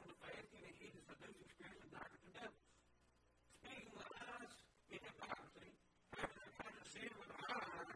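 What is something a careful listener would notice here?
A man speaks calmly and clearly into a microphone, as if teaching.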